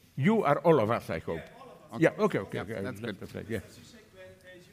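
A man speaks loudly through a microphone in a large room.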